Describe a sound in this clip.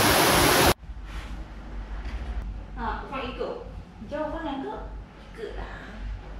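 A young woman talks quietly indoors.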